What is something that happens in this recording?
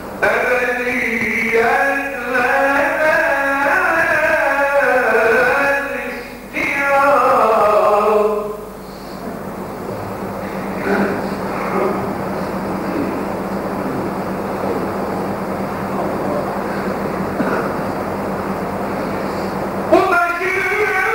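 A man chants loudly through a microphone in a long, wavering melody.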